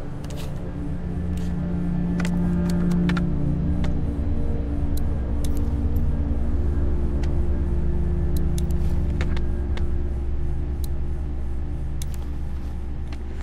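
Plastic parts of a small radio click and rattle as they are handled.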